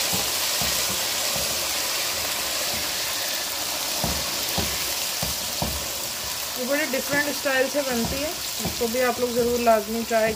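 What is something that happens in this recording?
Oil sizzles and bubbles in a pan.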